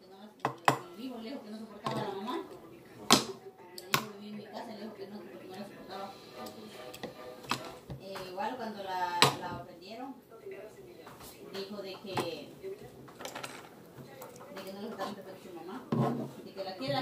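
A knife chops on a cutting board with sharp knocks.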